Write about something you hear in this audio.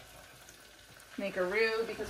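Rice pours into a pot.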